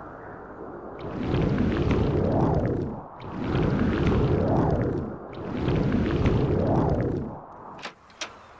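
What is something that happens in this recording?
Wind rushes past in three swelling gusts.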